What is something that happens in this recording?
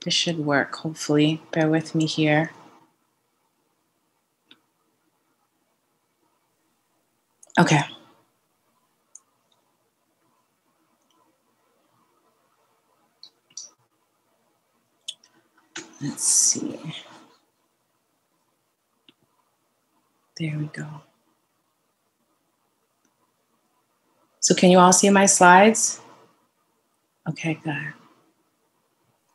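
A woman speaks calmly over an online call, in short bursts with pauses.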